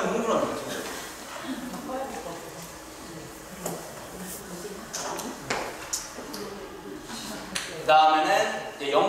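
A young man speaks calmly into a microphone, heard over a loudspeaker in an echoing room.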